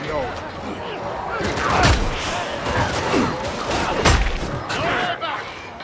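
Heavy weapon blows thud and clang in a fight.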